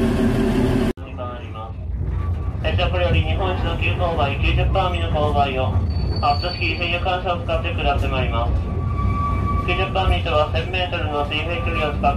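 A train rumbles along the rails.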